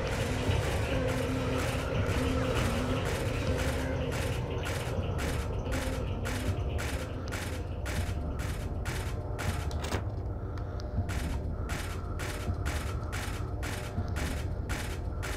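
Footsteps tap at a steady, quick pace.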